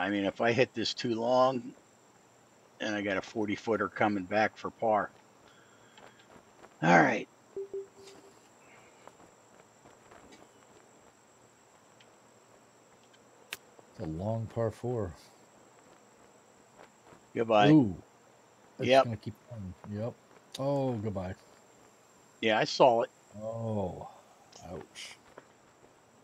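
A middle-aged man talks casually into a headset microphone, in short bursts with pauses.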